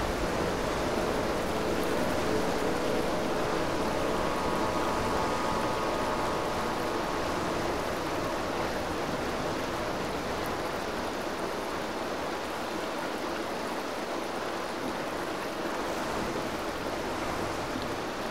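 Oars dip and splash softly in calm water.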